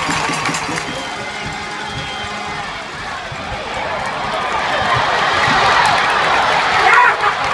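A large crowd cheers, swelling to a loud roar outdoors.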